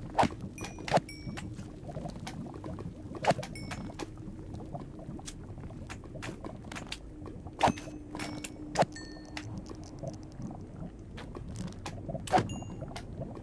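A sword strikes a creature again and again with sharp thuds.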